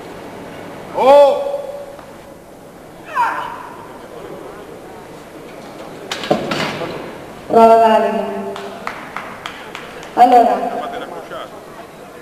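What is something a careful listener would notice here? A man shouts loud encouragement in an echoing hall.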